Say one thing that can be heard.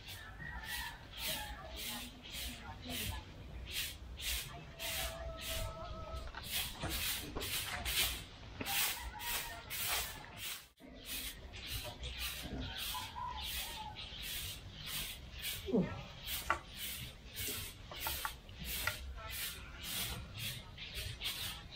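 A stiff broom sweeps the ground in quick, rhythmic strokes.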